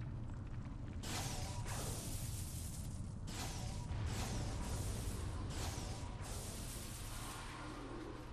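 Electricity crackles and roars in loud bursts.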